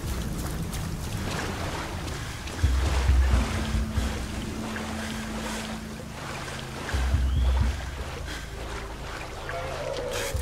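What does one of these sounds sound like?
Water splashes and sloshes around wading legs.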